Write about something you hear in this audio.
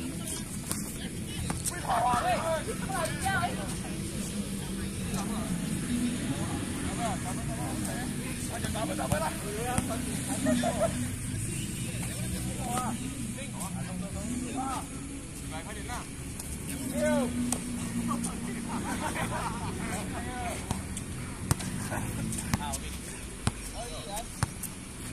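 Young men shout and call out to each other across an open court.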